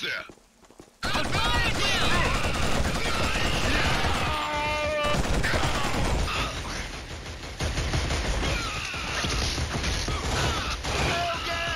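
Rapid rifle gunfire rattles loudly.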